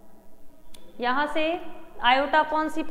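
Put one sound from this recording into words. A young woman speaks clearly and close by.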